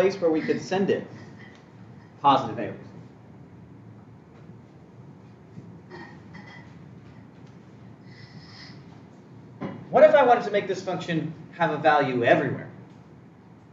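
A man speaks in a lecturing tone, pausing between phrases.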